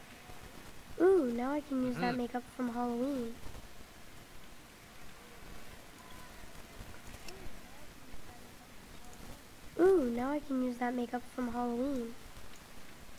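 A young boy speaks with excitement.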